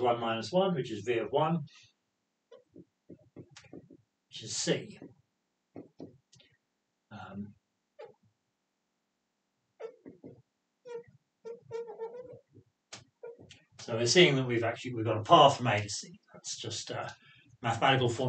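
A man speaks calmly and clearly, as if explaining, close to a microphone.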